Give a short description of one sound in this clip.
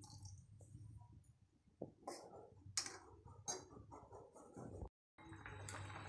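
A metal ladle scrapes and stirs a thick mixture in a pan.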